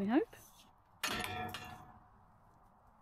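A metal gate latch clanks.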